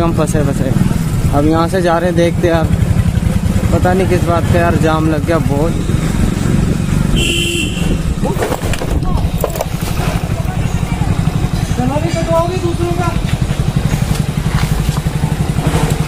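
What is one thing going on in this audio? A motorcycle engine idles and putters close by.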